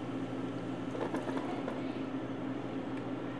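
Blueberries tumble out of a plastic container and drop softly into a pot.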